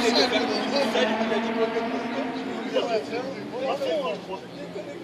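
A crowd of spectators chatters and calls out outdoors at a distance.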